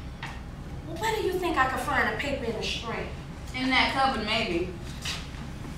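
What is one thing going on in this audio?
An older woman answers calmly.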